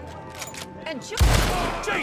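A revolver fires a single loud shot.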